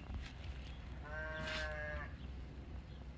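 A sheep bleats loudly nearby.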